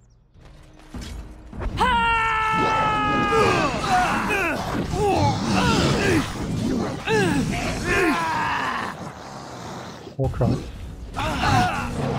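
Swords clash and clang in a noisy fight.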